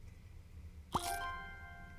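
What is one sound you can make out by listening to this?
A bright magical chime rings out and fades.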